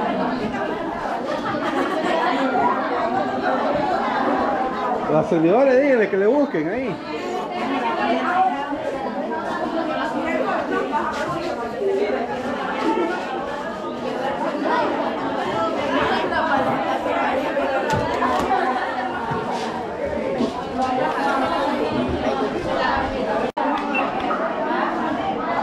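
A crowd of children and women chatter loudly in an echoing room.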